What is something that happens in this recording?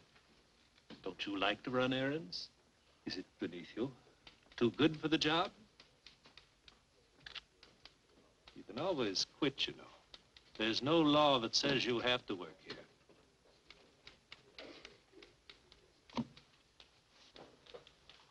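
Another man answers with animation, close by.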